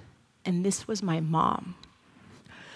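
A woman speaks with animation through a microphone, heard in a large hall.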